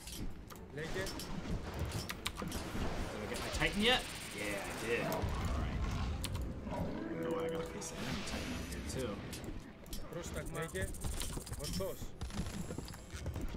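Swords clash and clang in a noisy battle.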